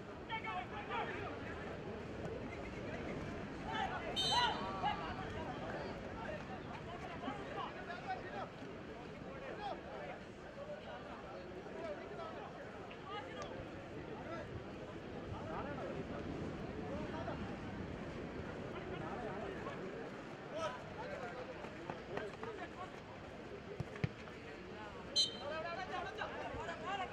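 A large crowd cheers and shouts steadily in the open air.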